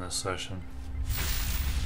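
A sharp whooshing hit sound bursts out.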